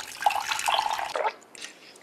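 A liquid pours in a thin stream.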